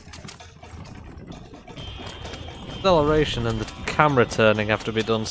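Wooden wagon wheels rattle over rough ground.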